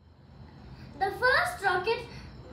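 A young boy speaks close by.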